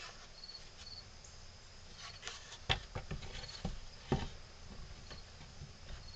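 Wooden blocks knock against each other.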